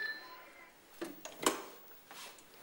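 A telephone handset clatters as it is picked up.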